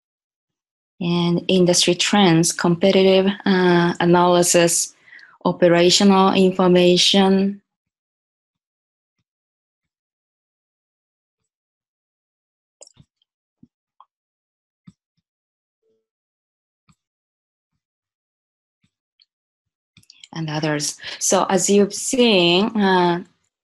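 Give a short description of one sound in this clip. A woman speaks calmly into a microphone over an online call.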